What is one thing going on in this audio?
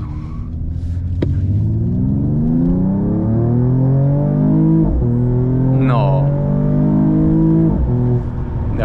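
A car engine revs hard, rising in pitch as the car speeds up.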